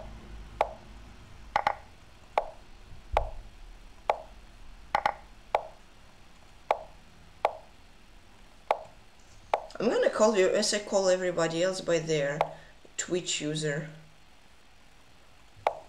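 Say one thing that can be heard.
Chess pieces click sharply as moves are played, again and again.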